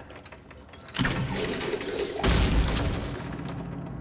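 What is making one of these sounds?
A piano crashes down onto the floor with a loud jangling thud.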